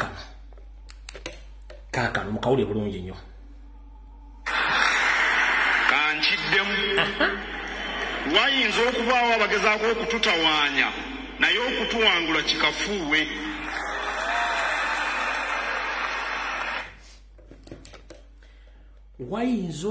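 A man speaks with animation into a webcam microphone.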